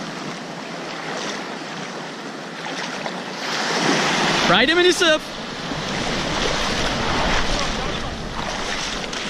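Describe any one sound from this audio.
Waves wash and break on a shore close by.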